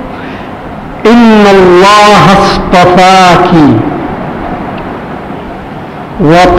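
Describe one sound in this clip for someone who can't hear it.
An elderly man recites in a slow, melodic chant through a microphone.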